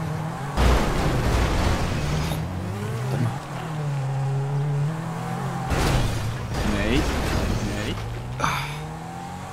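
A sports car engine revs and roars.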